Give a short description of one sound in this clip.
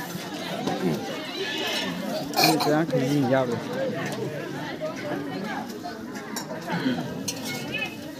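Spoons scrape and clink against metal plates.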